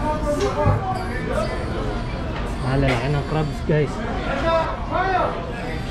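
Adults chatter in a busy crowd nearby.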